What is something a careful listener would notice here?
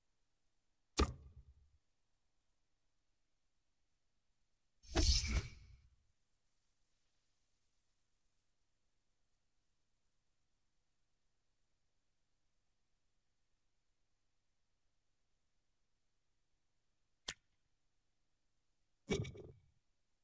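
Game menu sounds whoosh and click as options are chosen.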